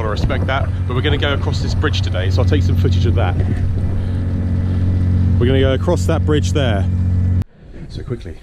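A man talks outdoors in strong wind.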